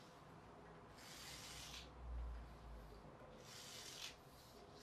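A small toy car rolls across a wooden floor.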